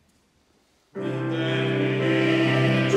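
A group of children sing together in a reverberant hall.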